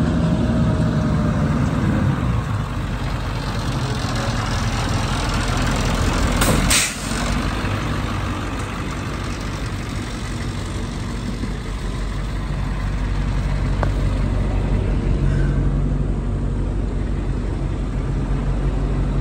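A diesel truck engine idles with a steady low rumble.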